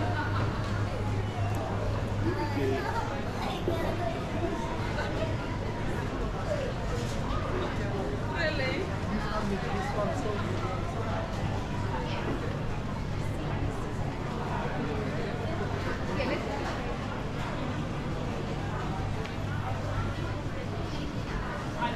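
A crowd of shoppers chatters all around in a busy indoor hall.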